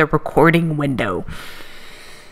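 An older man speaks briefly into a microphone.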